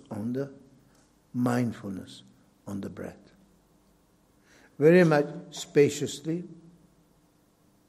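An elderly man speaks calmly and expressively into a microphone, in short bursts with pauses.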